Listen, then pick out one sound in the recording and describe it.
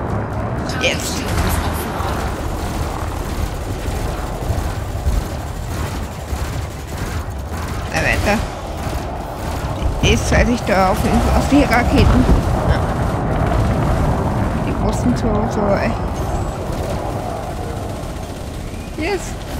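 A spacecraft engine hums with a low, steady rumble.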